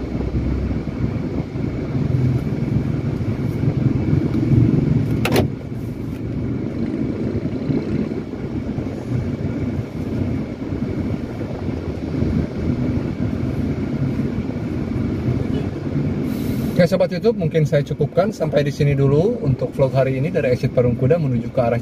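A car engine hums steadily in slow traffic.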